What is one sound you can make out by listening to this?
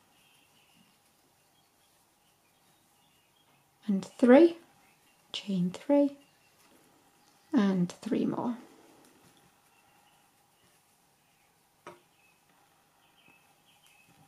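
A crochet hook softly draws yarn through stitches.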